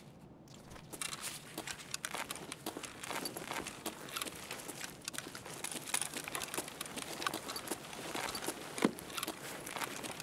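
Footsteps thud and scuff steadily across a hard, gritty floor.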